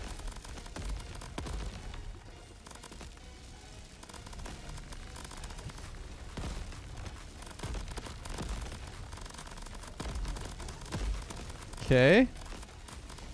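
Bursts of flame roar and crackle in a game.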